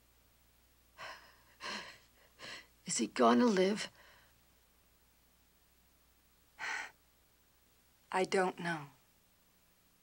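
A young woman answers quietly, close by.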